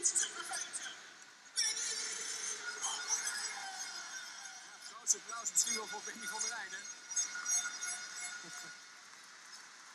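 A large crowd cheers loudly in a big echoing arena.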